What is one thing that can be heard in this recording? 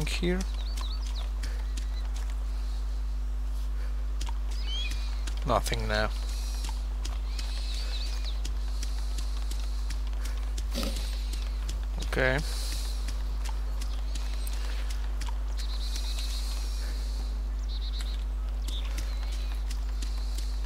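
Footsteps patter quickly over grass and dirt.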